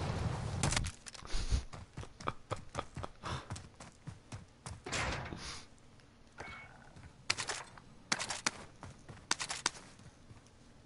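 Footsteps thud quickly over dirt and then a hollow wooden floor.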